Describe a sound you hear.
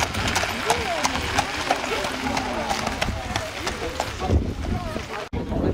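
A horse's hooves clop on gravel at a trot.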